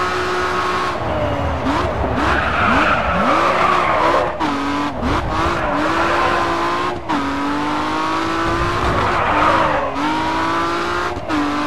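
A car engine revs up and down sharply.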